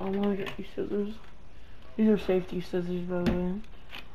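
A plastic package rustles and crinkles in a hand.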